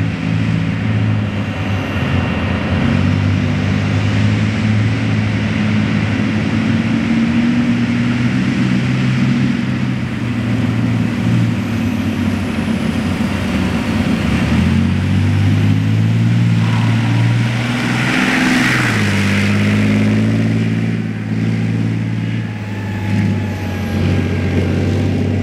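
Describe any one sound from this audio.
A tank engine roars loudly nearby, rising and falling in pitch.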